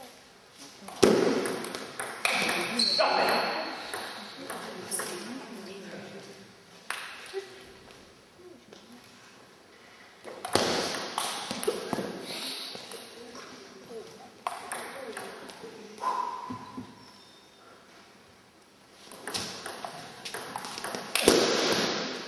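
A table tennis ball clicks back and forth off paddles and table in an echoing hall.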